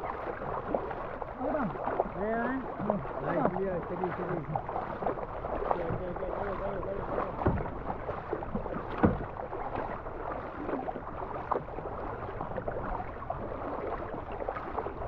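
River water rushes steadily around a kayak.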